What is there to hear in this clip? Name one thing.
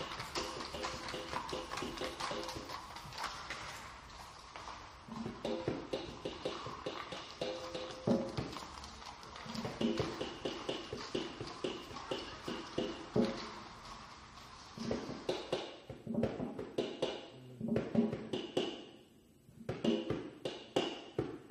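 Drums and cymbals are played lightly with sticks.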